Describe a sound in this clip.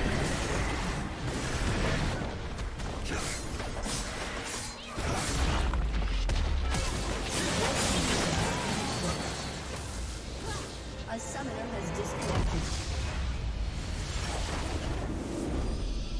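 Fantasy game battle effects clash, zap and burst rapidly.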